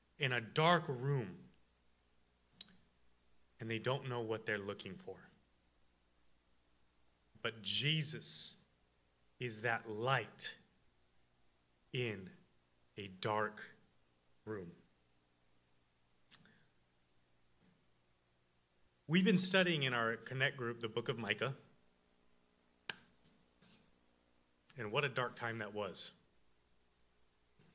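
A young man speaks calmly into a microphone, with pauses between phrases.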